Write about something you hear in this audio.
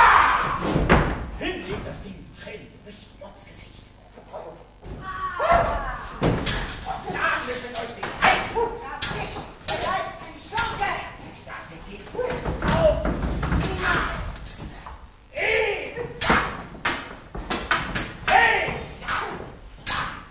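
Actors shout with animation in a large hall.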